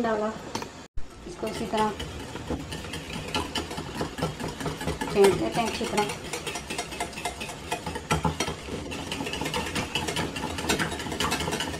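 A wire whisk beats yogurt, clicking against a bowl.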